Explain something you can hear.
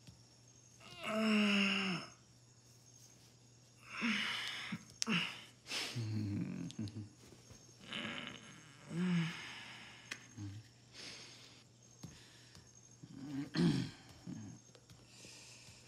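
A man talks in a low, tense voice.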